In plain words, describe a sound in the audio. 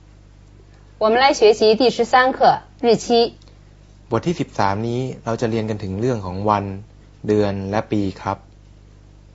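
A middle-aged woman speaks calmly and clearly, close by.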